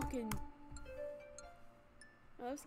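Short electronic game tones play in quick steps.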